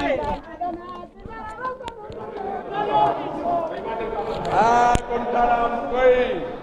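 A crowd of men and women shouts and cheers excitedly close by.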